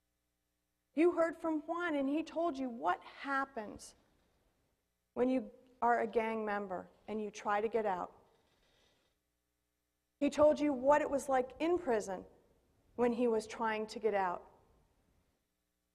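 A woman speaks with animation through a microphone in a large room.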